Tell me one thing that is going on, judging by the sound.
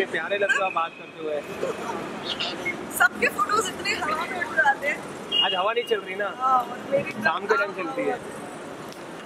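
A young woman laughs and speaks briefly nearby.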